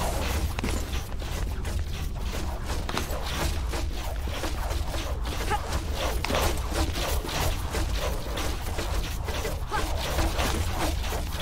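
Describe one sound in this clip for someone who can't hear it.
Hands shuffle and scrape along a stone ledge.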